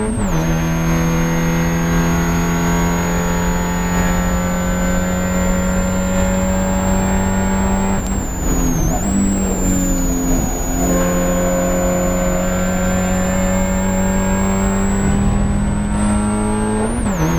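A Spec Miata's four-cylinder engine drones at full throttle, heard from inside the cockpit.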